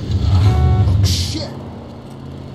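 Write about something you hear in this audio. Tyres screech as a car turns sharply.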